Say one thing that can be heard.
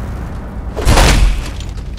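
A vehicle engine rumbles low.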